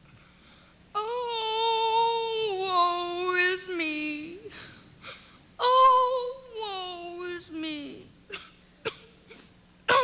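A young man sings loudly on a stage.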